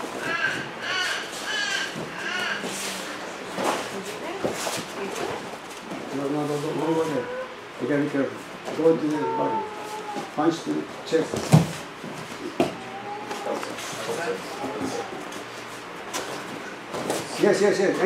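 Bare feet thump and shuffle on a padded mat.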